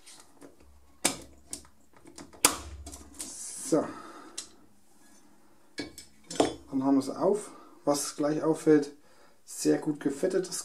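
Small metal parts click and clack as they are handled.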